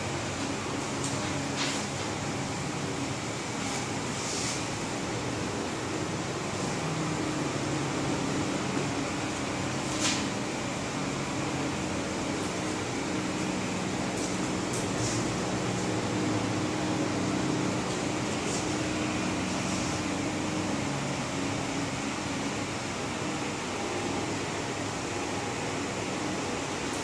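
A marker squeaks and taps on a whiteboard.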